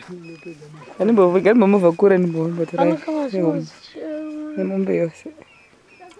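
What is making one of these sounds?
A young girl speaks and calls out close by.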